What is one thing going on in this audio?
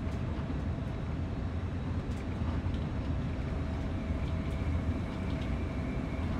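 A diesel locomotive engine rumbles steadily from inside the cab.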